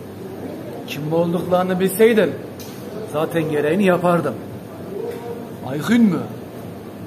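A younger man speaks animatedly, raising his voice, close by.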